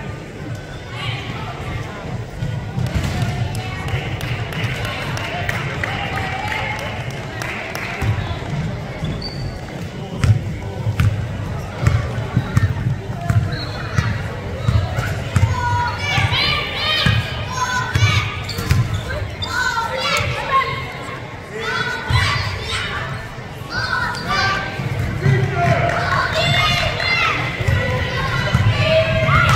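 A basketball bounces on a wooden court in a large echoing gym.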